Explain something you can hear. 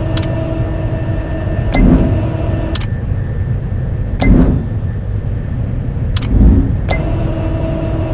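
Machinery gears grind and clank steadily.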